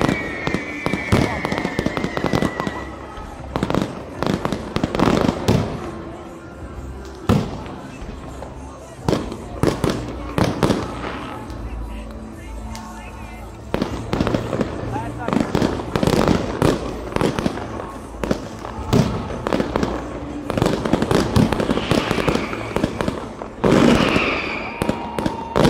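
Fireworks bang and crackle loudly outdoors, one burst after another.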